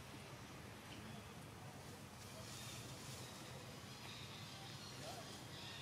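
A baby monkey suckles softly at close range.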